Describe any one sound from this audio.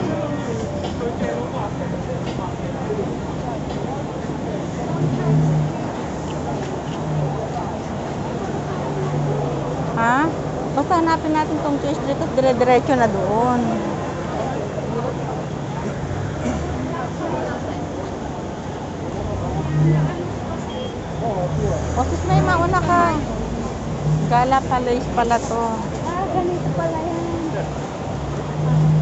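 A crowd of people murmurs and chatters nearby outdoors.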